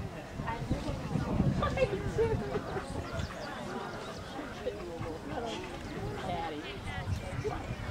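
Two women talk nearby in calm conversation.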